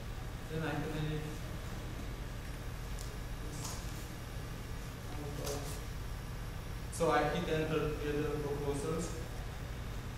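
A young man speaks calmly into a microphone, in short bursts.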